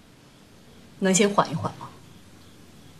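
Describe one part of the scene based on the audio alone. A woman asks a question softly, close by.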